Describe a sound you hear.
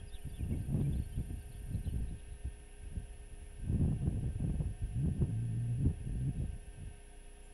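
Strong wind gusts and rumbles across open ground.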